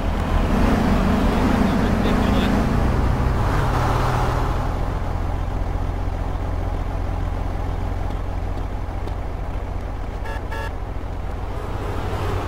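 A car engine idles nearby with a low rumble.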